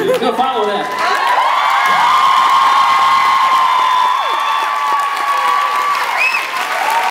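A crowd screams and cheers loudly in a large room.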